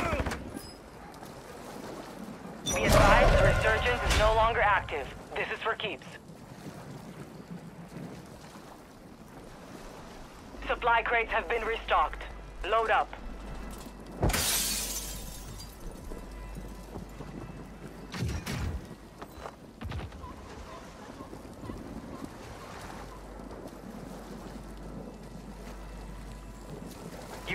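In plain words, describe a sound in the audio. Water splashes softly as a swimmer moves through it.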